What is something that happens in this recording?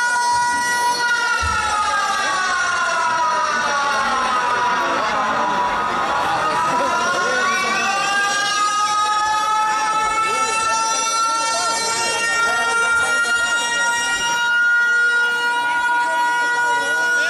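A band plays loud amplified music through large loudspeakers outdoors.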